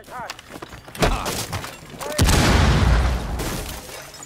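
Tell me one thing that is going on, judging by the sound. A wooden barricade bursts apart in a blast.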